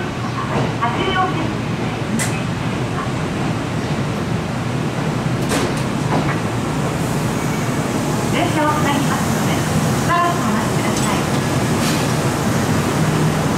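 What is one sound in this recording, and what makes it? An electric commuter train creeps slowly toward a stationary train.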